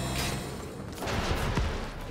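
An explosion booms outside.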